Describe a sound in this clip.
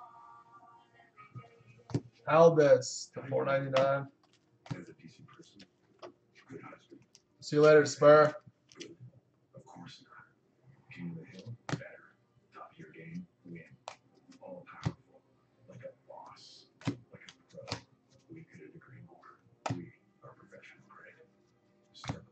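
Trading cards flick and rustle as a stack is shuffled by hand.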